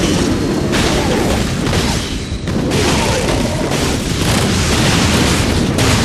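Laser blasts and explosions crackle in a busy fight.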